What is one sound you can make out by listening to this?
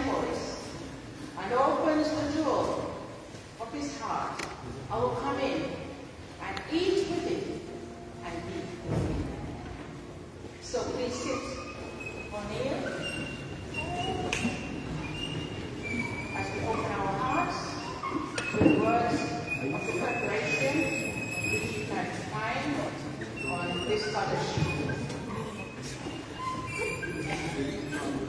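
A man sings through a microphone and loudspeakers in a large echoing hall.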